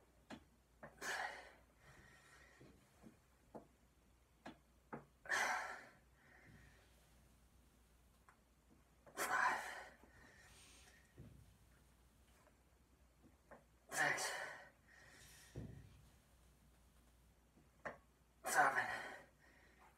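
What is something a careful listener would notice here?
A young man breathes out forcefully with each lift.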